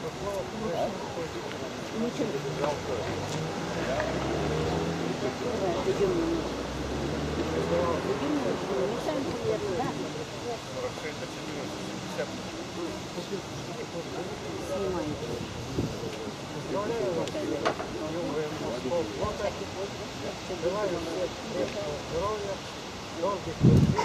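An elderly man talks nearby outdoors.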